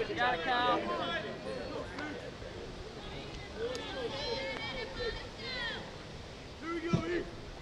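Young men shout and call out encouragement from a distance, outdoors.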